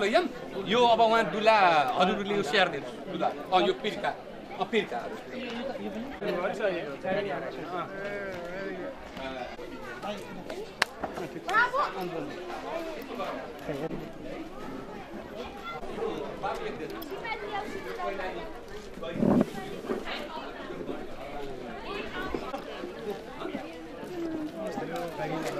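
Several men and women talk and chatter nearby outdoors.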